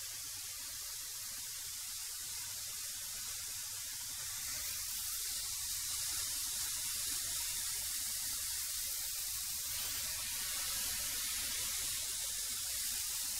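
A wood planer whines and roars steadily as boards feed through it.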